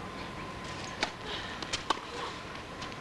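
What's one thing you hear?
A tennis ball is struck sharply by rackets in a short rally.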